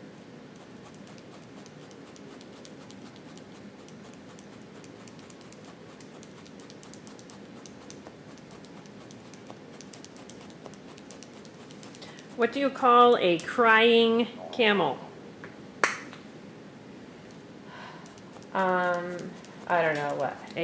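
A felting needle pokes softly and rapidly into wool.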